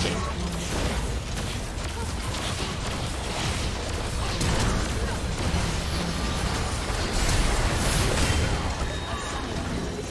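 Game characters' attacks hit with rapid thuds and clangs.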